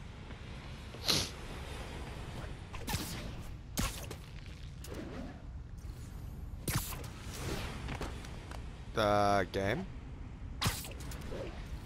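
Short whooshing zips sound as a figure swings through the air.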